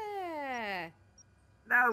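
A woman speaks with a falling, wavering voice.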